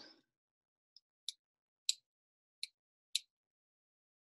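A pen clicks a few times.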